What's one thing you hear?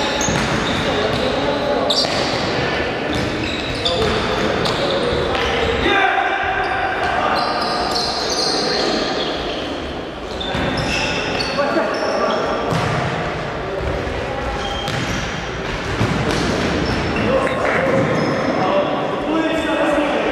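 A ball is kicked with sharp thuds in an echoing hall.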